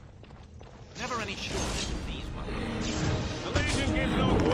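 Weapons clash and magic crackles in a fight.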